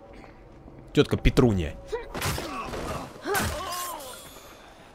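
Heavy blows land in a quick scuffle.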